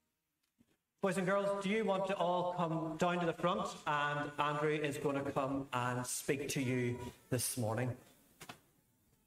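A man sings through a microphone in a large echoing hall.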